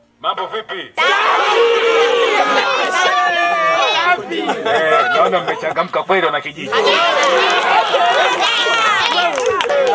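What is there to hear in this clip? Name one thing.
A large crowd cheers and shouts with excitement outdoors.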